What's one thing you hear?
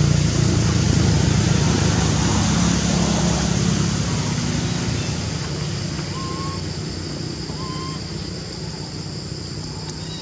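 Dry leaves rustle under a small monkey's feet.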